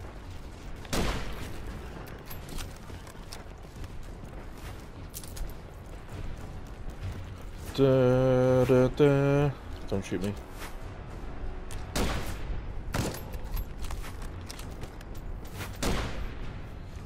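Gunshots ring out in sharp, echoing bursts.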